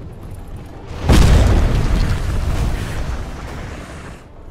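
A fiery blast booms loudly and rumbles away.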